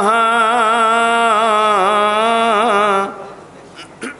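A man sings a long, wavering note into a microphone.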